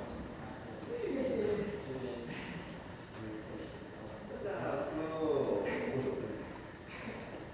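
A man talks casually in an echoing room.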